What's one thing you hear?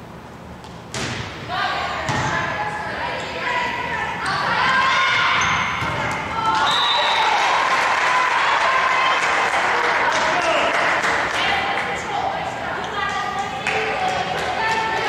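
Sneakers squeak on the wooden court.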